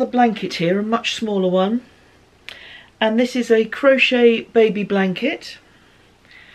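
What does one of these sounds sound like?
An older woman talks calmly and close to a microphone.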